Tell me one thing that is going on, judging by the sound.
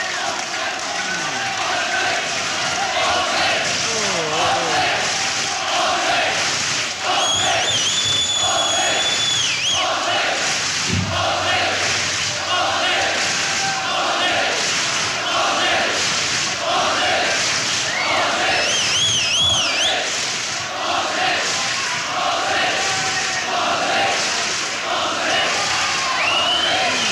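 A rock band plays loudly live in a large hall.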